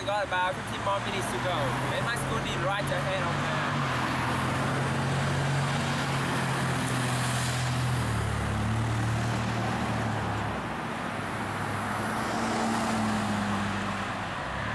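Cars drive past close by.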